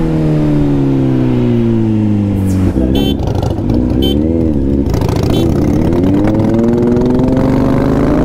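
A motorcycle engine drones up close, its pitch slowly dropping and then climbing again.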